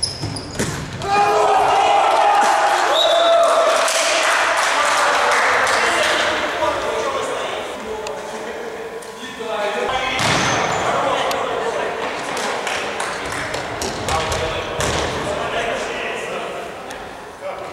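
Men shout and cheer loudly across the echoing hall.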